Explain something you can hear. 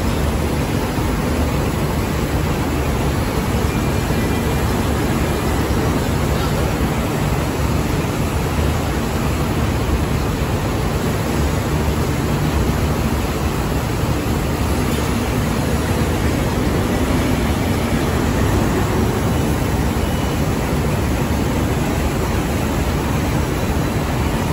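Industrial machinery hums and rumbles steadily in a large hall.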